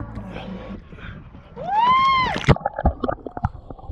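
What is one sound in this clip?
A person splashes into the water.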